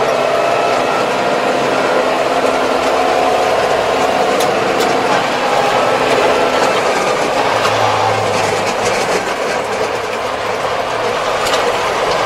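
A tractor engine hums steadily from inside the cab.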